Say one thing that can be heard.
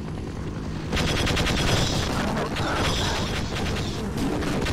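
An energy weapon fires with a buzzing crackle.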